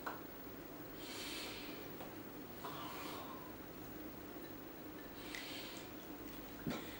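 A woman softly blows out short puffs of air close by.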